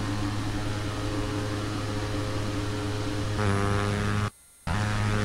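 Aircraft engines drone steadily in flight.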